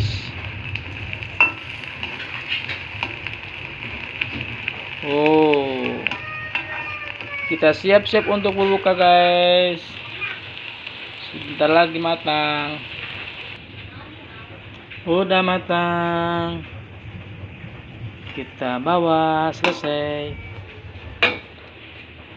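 Hot oil sizzles steadily in a pan.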